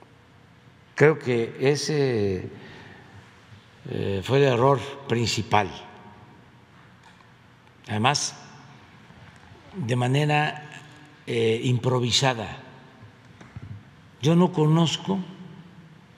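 An elderly man speaks slowly into a microphone, in short bursts with pauses.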